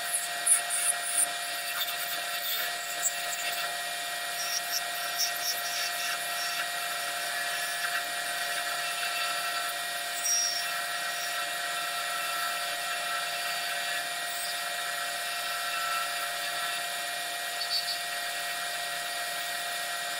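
A turning tool scrapes and cuts a small spinning piece of wood.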